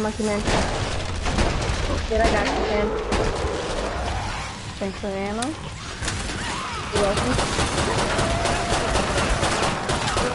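A pistol fires repeated sharp shots.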